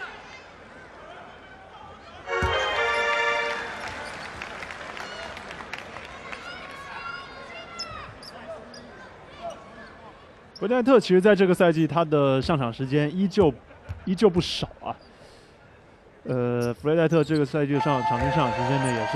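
A large indoor crowd murmurs and cheers in an echoing arena.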